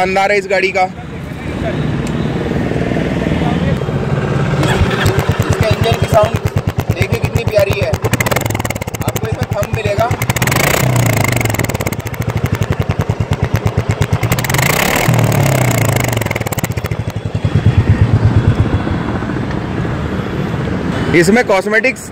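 A motorcycle engine starts and idles with a steady, deep thumping.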